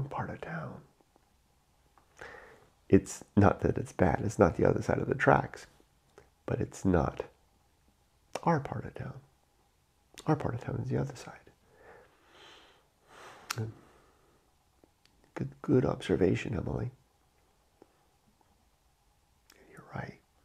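A middle-aged man talks calmly into a close microphone, with pauses.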